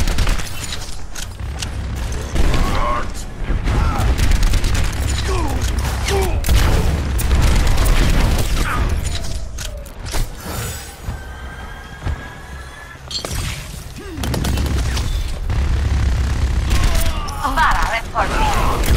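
Gunfire from a game weapon rings out in rapid bursts.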